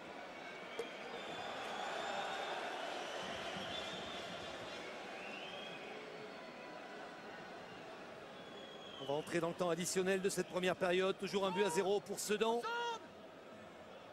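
A stadium crowd murmurs and cheers in the background.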